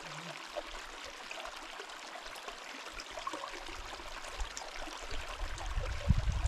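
A shallow stream babbles steadily over rocks.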